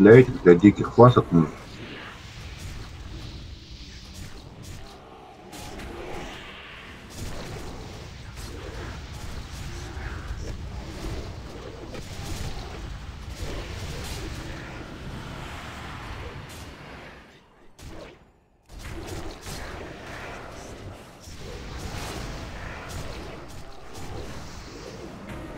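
Spell effects crackle and whoosh during a fantasy battle.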